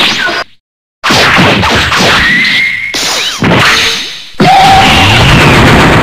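Energy blasts whoosh and burst in a fight.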